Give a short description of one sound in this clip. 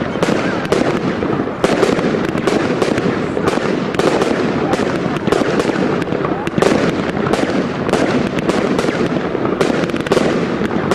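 Fireworks burst with sharp bangs and crackles.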